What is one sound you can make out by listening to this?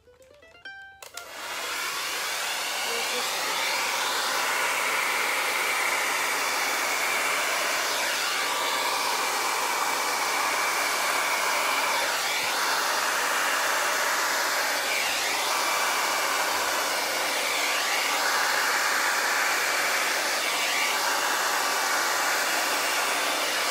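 A hair dryer blows with a loud, steady whoosh.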